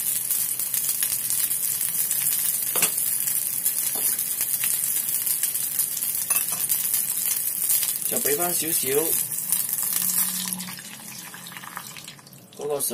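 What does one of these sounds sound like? Food sizzles and hisses loudly in a hot pan.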